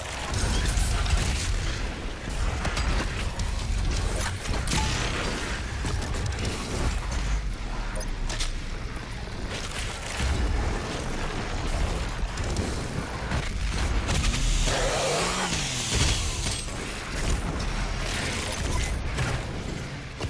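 Guns fire rapidly with loud bangs.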